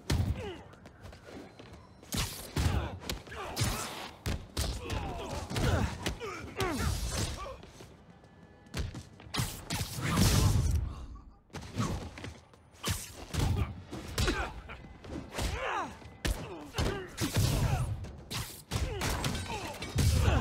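Men grunt and cry out as they are hit.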